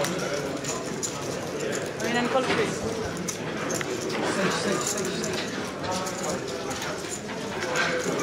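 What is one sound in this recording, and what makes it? Poker chips click and clatter on a table.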